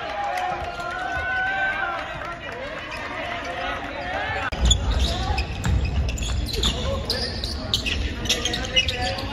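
Young men shout and call out across an echoing gym.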